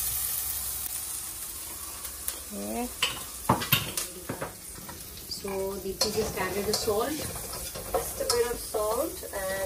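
A spatula scrapes and clatters against a metal pan.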